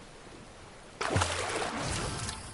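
A fishing line splashes into water.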